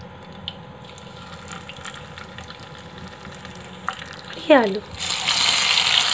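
Hot oil sizzles as eggs fry in a pan.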